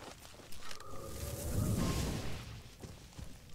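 An arrow shot bursts into a fiery explosion.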